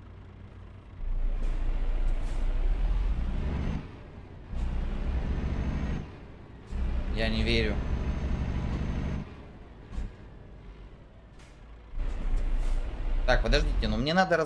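A truck engine rumbles low, rising and falling as the truck drives.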